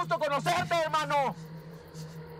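A man cries out loudly in alarm.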